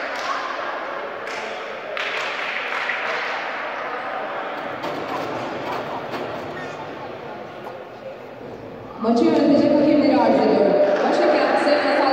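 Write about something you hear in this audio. Young women chatter and call out across a large echoing hall.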